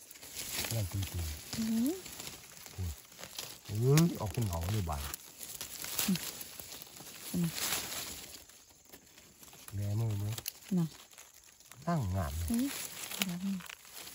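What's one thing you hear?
Dry leaves and twigs rustle as hands push through them.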